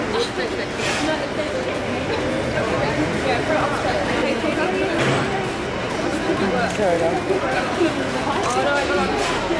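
Several people chatter in an echoing space.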